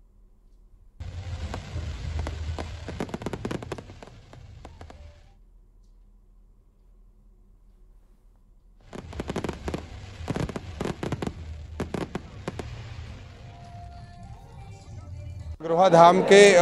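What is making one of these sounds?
Fireworks crackle and bang overhead.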